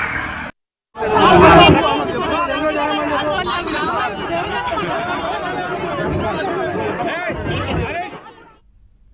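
A crowd of women and men talk loudly over each other outdoors.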